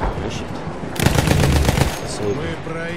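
A machine gun fires a rapid, loud burst.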